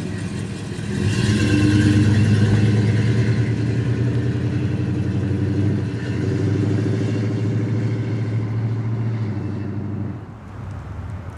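A second car's engine rumbles and revs as it pulls away.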